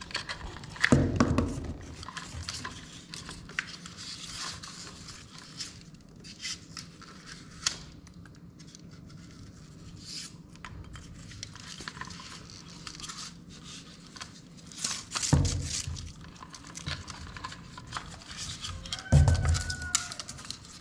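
A plastic box knocks and clicks against a wall.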